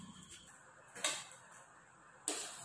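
A spoon clinks against a metal bowl.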